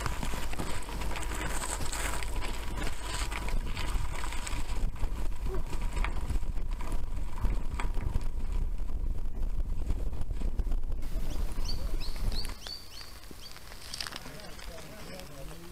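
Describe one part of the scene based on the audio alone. Bicycle tyres crunch and rattle over a gravel track.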